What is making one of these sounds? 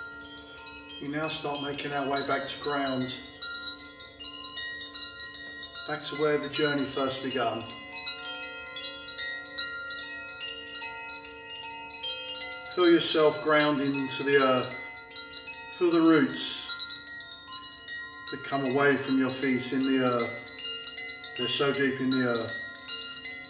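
A middle-aged man talks calmly, close to the microphone.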